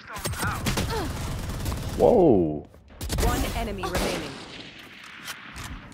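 Gunshots fire in short, rapid bursts.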